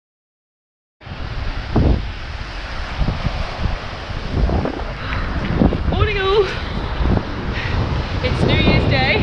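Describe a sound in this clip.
Waves wash and break on the shore close by.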